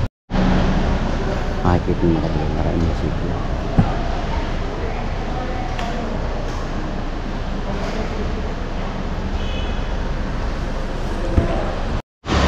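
People murmur in a large echoing hall.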